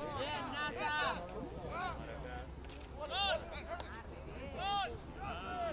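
Young players shout loudly outdoors.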